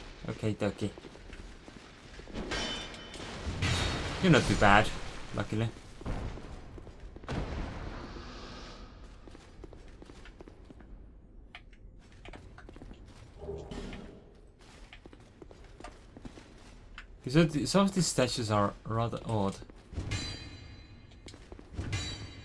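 A sword clashes against armour in a fight.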